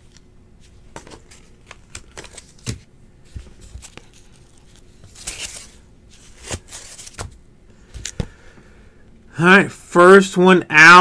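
Cardboard rustles and taps as a box is handled up close.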